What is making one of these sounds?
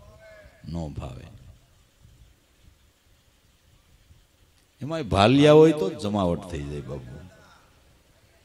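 An elderly man sings with feeling into a microphone, heard through a loudspeaker.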